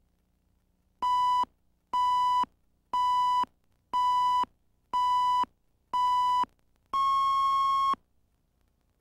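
A steady electronic beep sounds once each second during a countdown, with a final longer beep.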